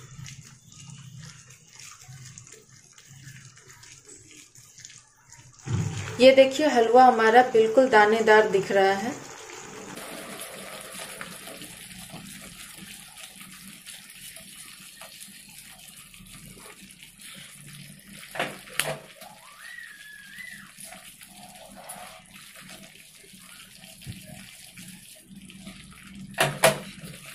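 Thick paste sizzles and bubbles in a hot pan.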